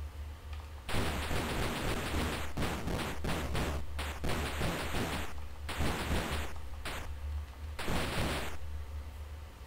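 Retro video game sound effects hiss in bursts.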